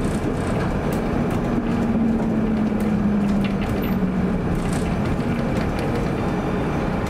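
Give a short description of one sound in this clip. A tram's electric motor hums low, rising and then falling in pitch.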